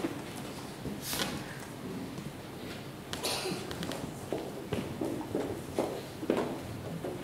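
A choir sings together in a large echoing hall.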